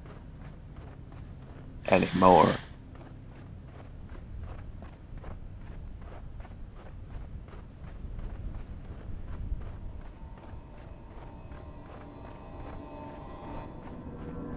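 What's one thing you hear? Footsteps crunch steadily on sand.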